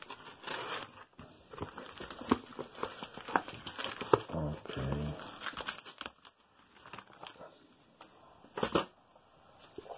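Cardboard scrapes and rustles as items are slid out of a box.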